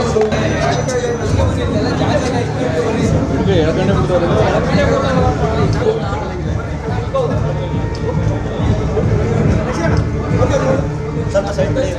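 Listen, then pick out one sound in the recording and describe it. A crowd of men talks and shouts all at once, close by.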